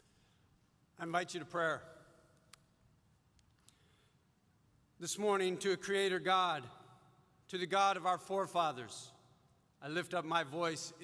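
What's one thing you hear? A middle-aged man speaks calmly and solemnly through a microphone in a large hall.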